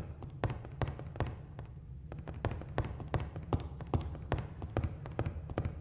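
Footsteps thud quickly on creaky wooden floorboards.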